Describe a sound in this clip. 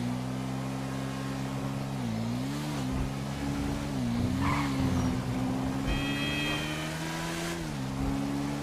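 A motorcycle engine hums steadily, its pitch dipping and rising as the rider slows and speeds up.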